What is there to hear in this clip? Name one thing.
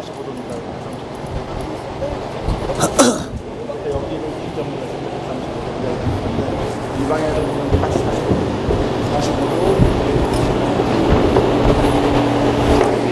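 A man speaks loudly in a large echoing hall.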